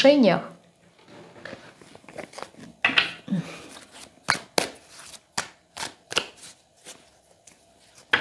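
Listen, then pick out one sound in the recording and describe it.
Cards are shuffled with soft, quick flicks and taps.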